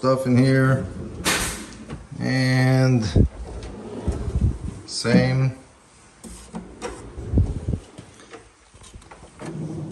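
A drawer bumps shut with a soft knock.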